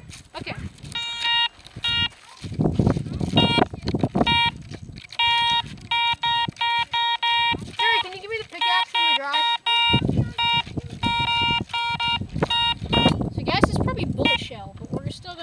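A metal detector beeps in short, repeated bursts.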